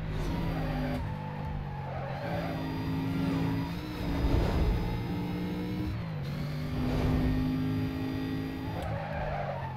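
A racing car engine roars at high revs and shifts gears.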